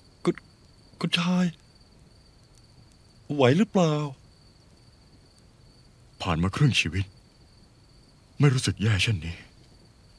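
A man speaks close by in a low, tense voice.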